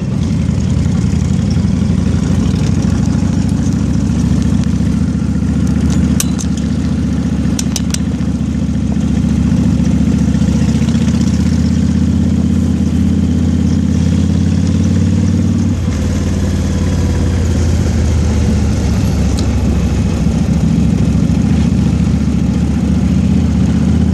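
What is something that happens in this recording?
A motorcycle engine rumbles steadily while riding along a road.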